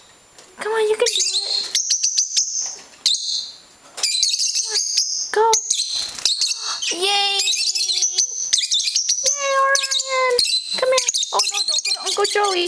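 Small parrots chirp, whistle and squawk loudly close by.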